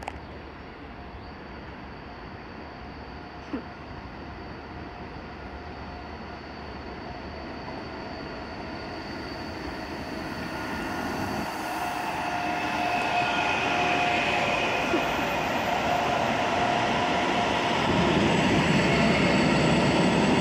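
A freight train approaches and rumbles past close by, growing louder.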